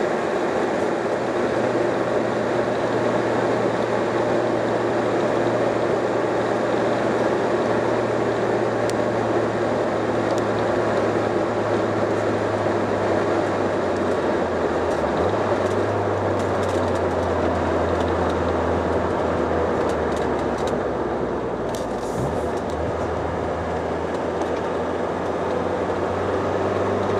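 Tyres roll with a steady roar on the road.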